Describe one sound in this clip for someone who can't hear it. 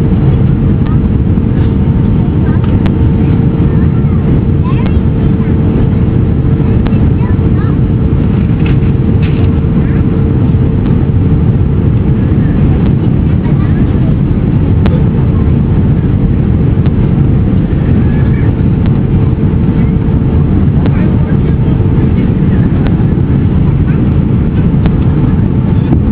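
A jet engine roars steadily inside an aircraft cabin.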